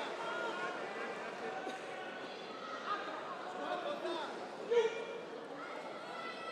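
A crowd of spectators chatters and calls out in a large hall.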